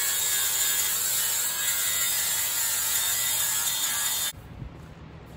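A power tool runs against a truck's steel frame.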